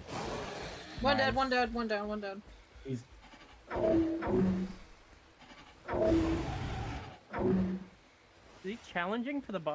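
A large reptile-like creature screeches and growls in repeated calls.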